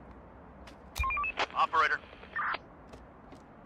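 Short electronic interface tones chirp in quick succession.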